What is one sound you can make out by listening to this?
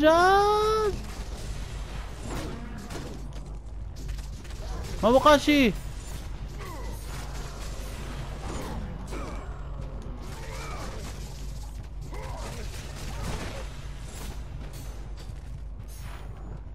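Blades swish and strike flesh in rapid blows.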